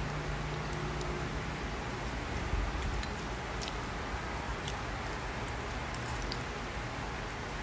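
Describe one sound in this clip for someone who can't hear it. A spoon clinks against a ceramic bowl.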